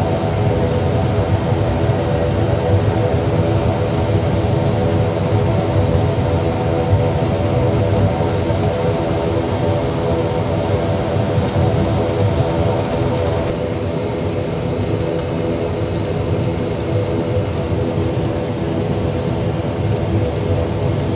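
Propeller engines drone loudly and steadily with a throbbing hum.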